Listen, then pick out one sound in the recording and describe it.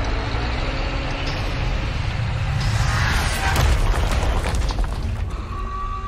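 A heavy wrecking ball whooshes as it swings.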